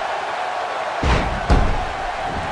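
A body slams heavily onto a wrestling ring mat with a loud thud.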